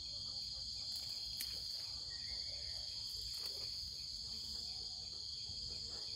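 Hands scrape and crumble loose soil.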